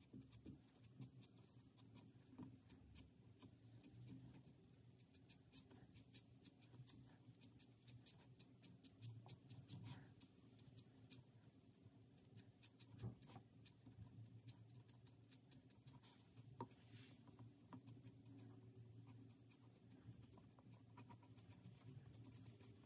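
A marker tip taps and scratches quickly on paper, close by.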